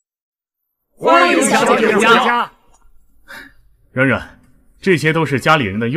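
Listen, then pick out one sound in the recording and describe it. A group of men and women call out a greeting together, loud and close.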